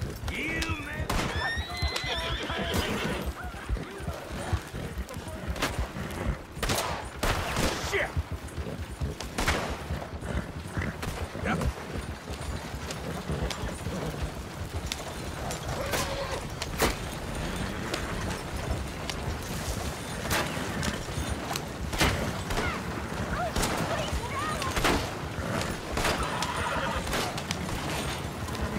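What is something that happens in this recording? Wooden wagon wheels rattle and creak over rough ground.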